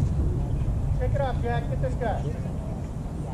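Young men call out from a distance.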